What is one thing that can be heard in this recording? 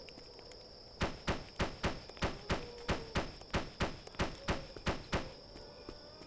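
Footsteps tap quickly on the ground as a game character runs.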